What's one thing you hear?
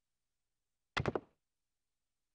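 A high heel clicks once on a hard floor.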